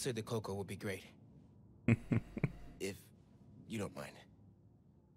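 A young man speaks quietly and calmly.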